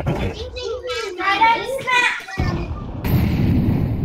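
A smoke grenade hisses as it spreads.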